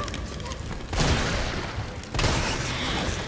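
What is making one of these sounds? A shotgun fires loud booming blasts.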